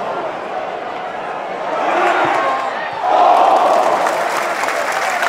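A football stadium crowd roars, swelling louder.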